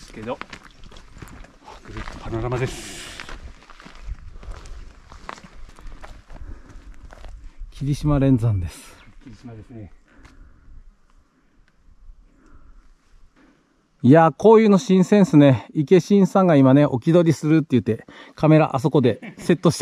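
A young man talks calmly outdoors.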